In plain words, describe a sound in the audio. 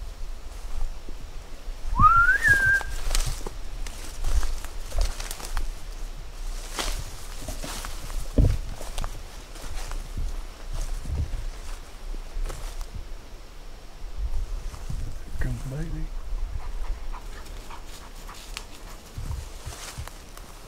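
Footsteps rustle through dry leaves on the forest floor.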